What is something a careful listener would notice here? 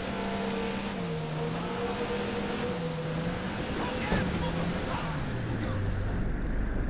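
A motorboat engine hums and wavers in pitch.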